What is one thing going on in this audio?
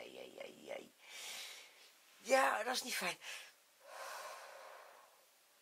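A woman breathes out heavily close by.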